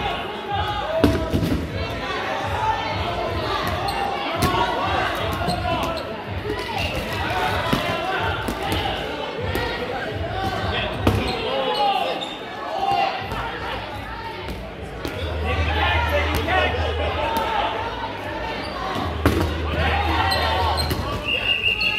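Rubber balls thump and bounce on a wooden floor.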